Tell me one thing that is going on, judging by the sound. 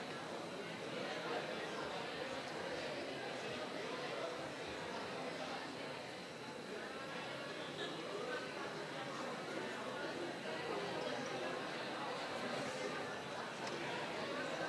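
A crowd of people murmur and chatter in a large echoing hall.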